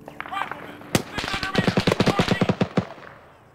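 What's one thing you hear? A rifle fires a rapid burst of shots close by.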